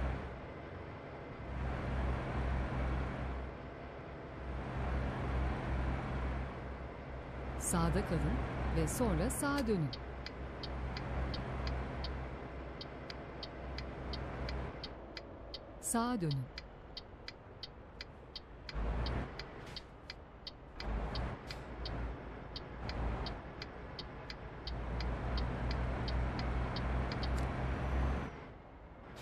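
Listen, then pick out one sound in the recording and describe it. A truck engine hums and rumbles steadily.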